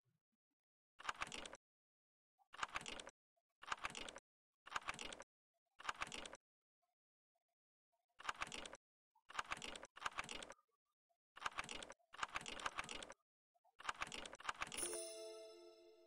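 Metal lock pins slide and click, one after another.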